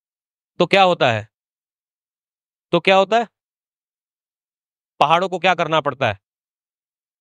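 A man speaks with animation through a microphone, in short bursts.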